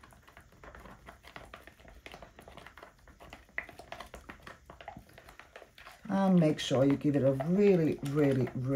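A stick stirs thick paint in a plastic cup with soft wet clicks.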